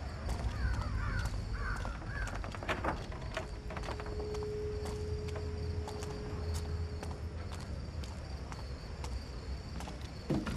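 Soft footsteps tread on stone.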